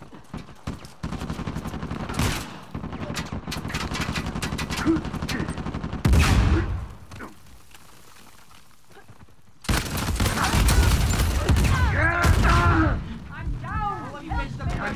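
Automatic gunfire rattles in rapid, loud bursts.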